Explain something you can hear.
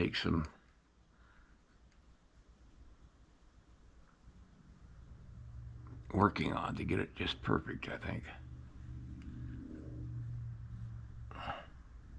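Fingers rub softly against clay.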